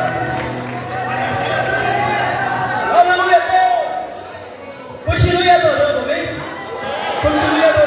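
A group of women sings together through loudspeakers, echoing outdoors.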